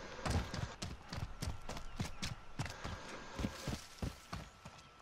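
Footsteps crunch quickly over dirt and rock.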